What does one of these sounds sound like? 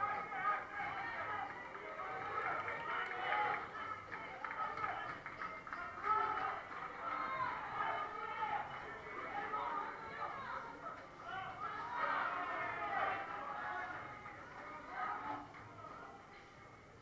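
A crowd of men shout and cheer with animation.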